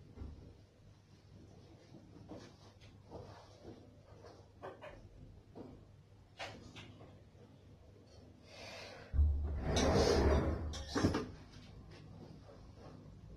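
A cloth rubs and squeaks against glass.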